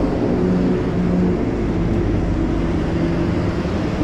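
A bus engine rumbles as the bus drives by.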